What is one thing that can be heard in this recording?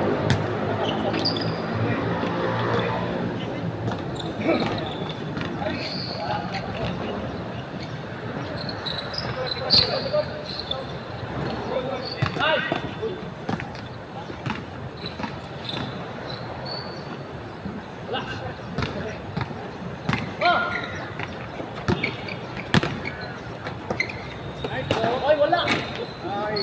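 Young men call out to each other outdoors.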